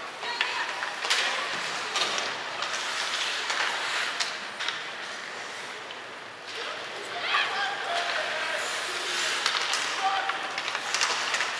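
Hockey sticks clack against the puck and the ice.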